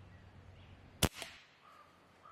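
A PCP air rifle fires a single shot.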